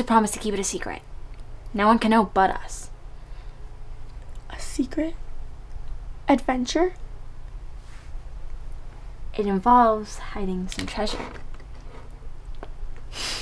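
A girl talks quietly and closely.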